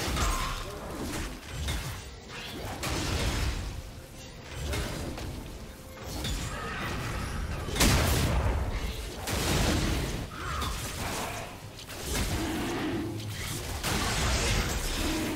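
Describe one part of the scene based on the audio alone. Fantasy game combat effects crackle and burst as a creature is struck repeatedly.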